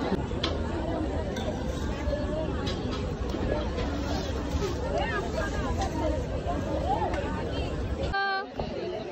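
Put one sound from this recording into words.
A crowd chatters in a busy, noisy room.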